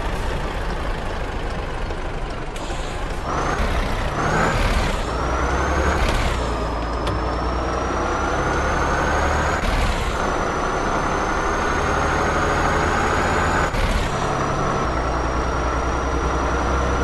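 A truck engine rumbles and revs up, dropping pitch at each gear change.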